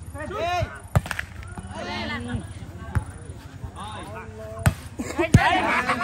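A ball is kicked with sharp thumps.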